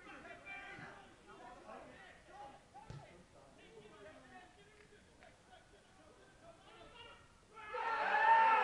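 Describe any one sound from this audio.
Men shout across an outdoor football pitch.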